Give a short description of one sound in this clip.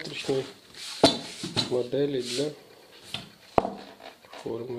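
A drywall mould knocks against a wooden table as it is lifted and set down.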